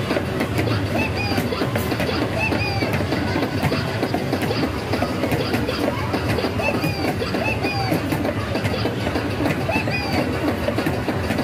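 An arcade game plays loud electronic music and chirping jingles.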